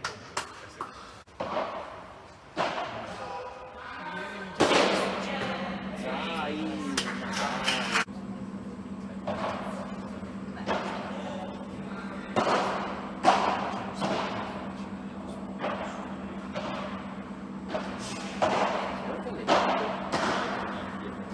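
Padel rackets strike a ball back and forth with sharp pops.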